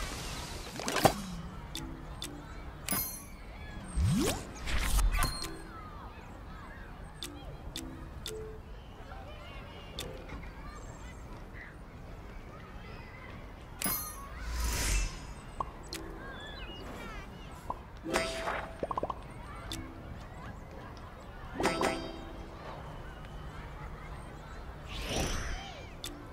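Short whooshing sweeps rise and fade.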